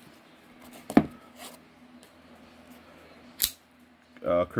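A folding knife clicks as its blade is handled.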